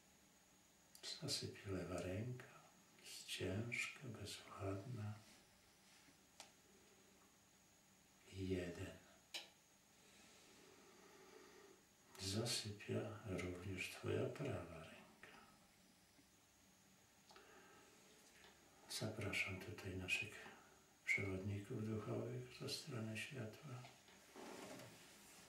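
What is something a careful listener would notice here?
An elderly man speaks calmly and softly, close by, in short phrases with pauses.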